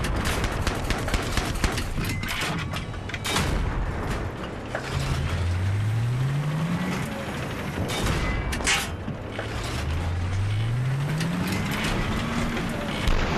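A tank engine rumbles and whines higher as the tank speeds up.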